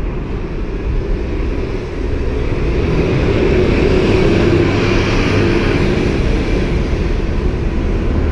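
An articulated city bus pulls away.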